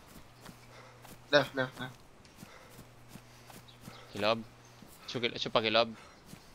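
Footsteps swish through tall grass at a steady walking pace.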